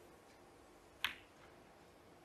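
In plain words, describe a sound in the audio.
A cue strikes a ball with a short, sharp click.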